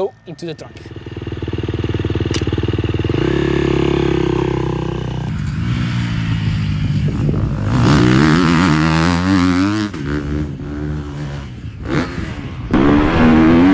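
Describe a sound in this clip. A motocross bike engine revs and roars.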